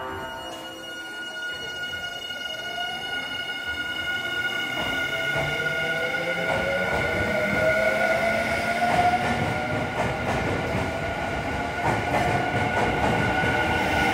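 An electric train pulls away with a rising motor whine.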